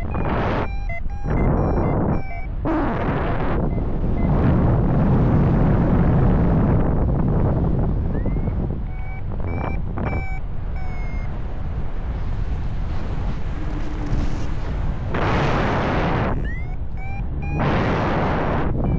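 Wind rushes and buffets loudly past the microphone outdoors.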